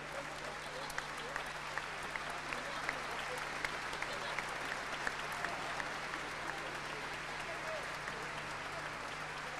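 A small group of people clap close by.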